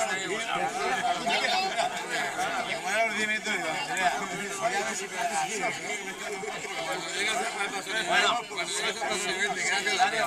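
An older man speaks with animation close by.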